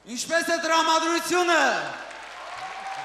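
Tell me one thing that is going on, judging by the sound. A woman sings loudly through a microphone, ending a song.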